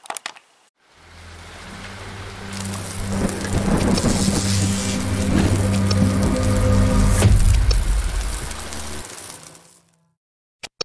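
Electric crackling zaps sound as lightning bolts flash.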